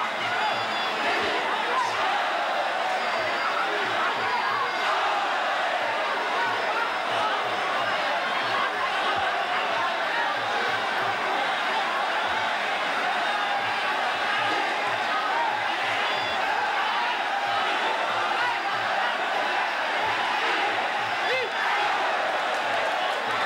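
A large crowd cheers and shouts loudly throughout.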